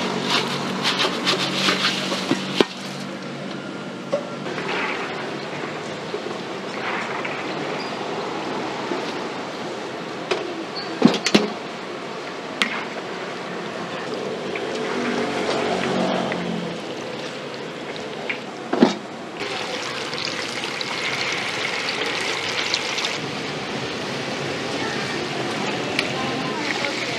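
Hot oil sizzles and bubbles steadily.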